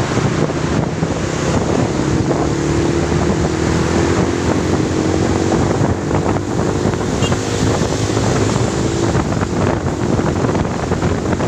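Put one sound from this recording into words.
Wind rushes loudly past the microphone.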